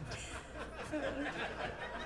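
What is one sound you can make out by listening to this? A man laughs through a microphone.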